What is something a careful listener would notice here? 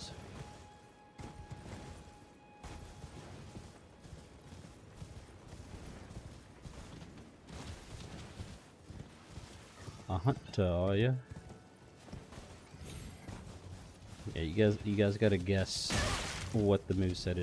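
A horse gallops, its hooves thudding on grass.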